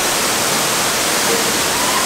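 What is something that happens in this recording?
A man dives into the water with a splash.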